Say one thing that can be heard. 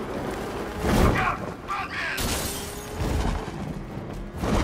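A car engine roars as a vehicle speeds along a street.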